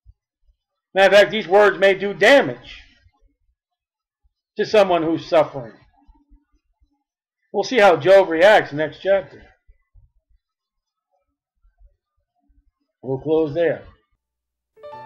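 A man speaks calmly and closely in short phrases with pauses.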